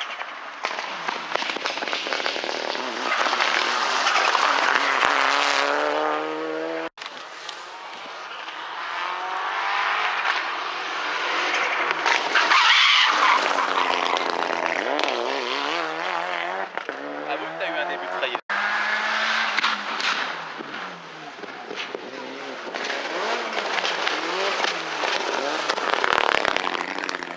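A rally car engine roars past at high speed, revving hard and changing gear.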